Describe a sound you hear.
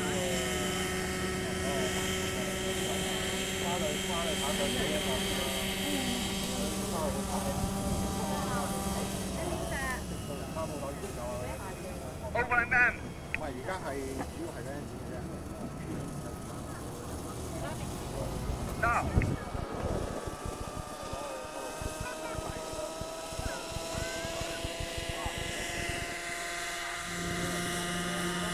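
A small model helicopter engine whines loudly nearby.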